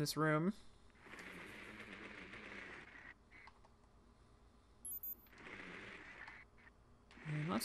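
A small remote-controlled vehicle whirs as it rolls across a floor.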